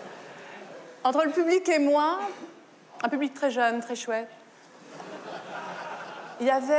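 A woman speaks expressively through a microphone.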